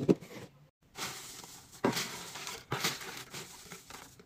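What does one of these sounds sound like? Shredded paper rustles as a hand rummages through it.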